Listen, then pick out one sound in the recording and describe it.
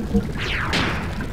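A short electronic menu blip sounds.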